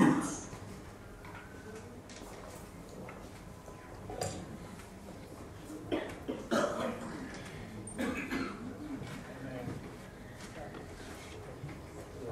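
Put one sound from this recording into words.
A woman speaks calmly through a microphone and loudspeakers in a large echoing hall.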